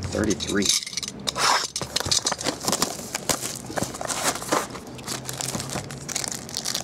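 Plastic wrapping crinkles and rustles in hands.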